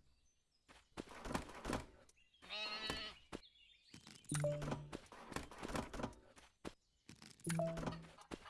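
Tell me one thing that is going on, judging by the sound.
A short game chime rings as a reward pops up.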